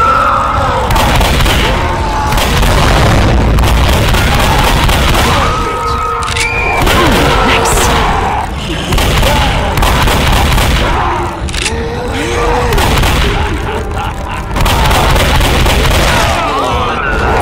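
A shotgun fires in rapid, loud blasts.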